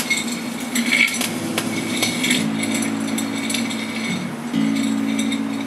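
An electric guitar plays sustained, distorted notes through an amplifier in an echoing cave.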